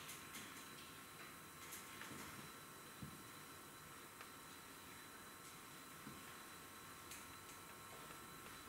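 Faint, steady electronic tones hum from loudspeakers in a quiet hall.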